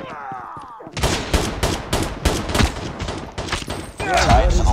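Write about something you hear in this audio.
Rapid gunshots ring out in quick bursts.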